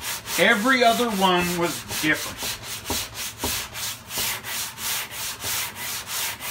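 A sanding block rasps back and forth over a metal car door in a steady rhythm.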